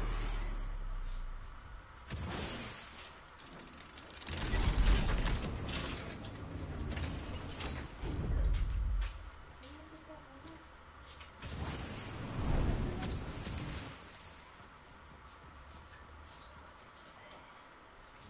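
Footsteps patter on metal floors.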